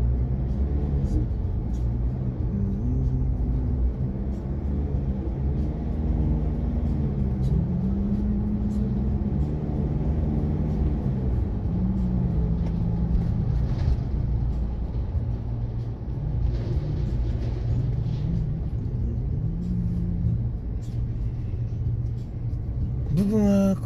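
A car engine hums steadily with a low road rumble while driving.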